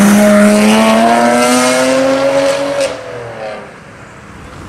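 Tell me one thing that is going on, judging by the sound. A sports car engine roars loudly as the car accelerates away.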